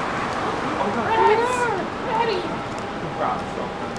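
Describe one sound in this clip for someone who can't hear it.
Footsteps pass close by on a pavement.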